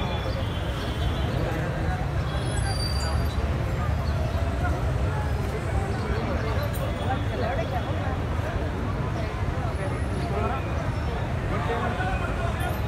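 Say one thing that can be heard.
A large crowd of men chatters and murmurs all around, outdoors.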